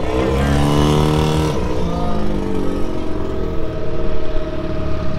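An off-road truck's engine revs loudly, then drops to a lower rumble.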